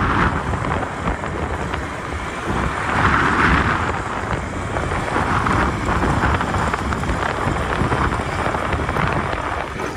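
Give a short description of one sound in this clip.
Tyres roll steadily over a rough road.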